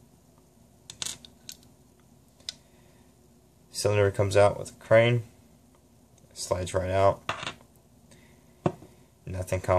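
Small metal parts click and tap.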